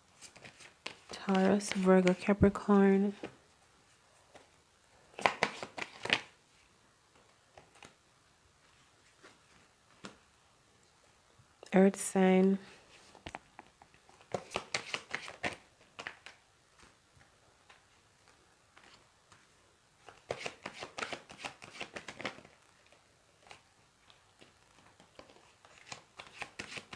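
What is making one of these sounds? Playing cards flick and rustle as a deck is shuffled by hand.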